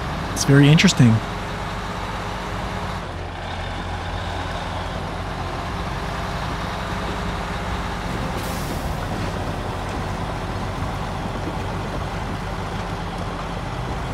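A heavy truck engine drones steadily as the truck drives along.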